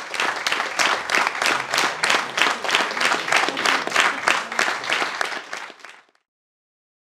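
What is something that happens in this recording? An audience applauds in rhythmic, unison clapping in a large hall, then fades out.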